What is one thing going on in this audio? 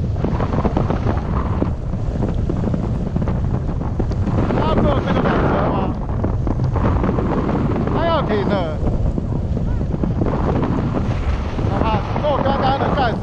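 Wind buffets and rumbles loudly in the open air.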